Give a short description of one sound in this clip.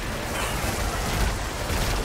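Gunfire bursts out in rapid shots.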